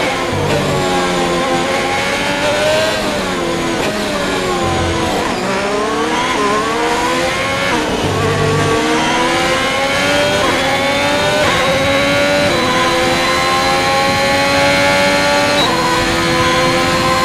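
A racing car engine screams loudly, its pitch dropping under braking and rising as it speeds up through the gears.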